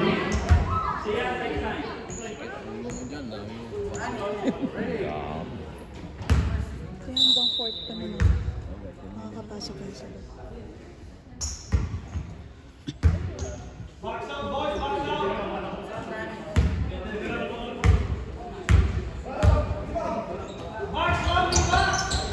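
Children and adults chatter and call out in an echoing gym.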